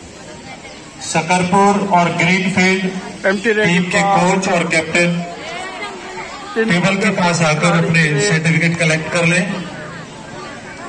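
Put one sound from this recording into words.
A teenage girl chants rapidly in one breath.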